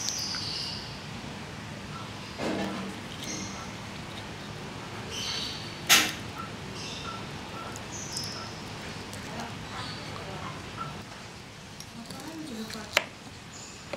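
Fingers peel and tear apart a fruit's skin.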